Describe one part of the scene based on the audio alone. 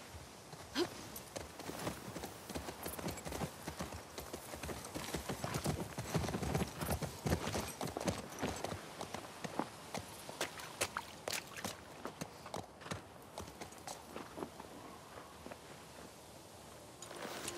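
Horse hooves clop steadily on the ground.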